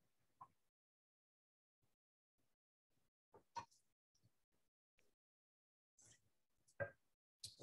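A metal ladle clinks against a metal bowl.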